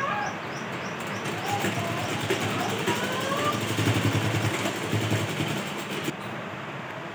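A sewing machine runs with a fast, steady rattle.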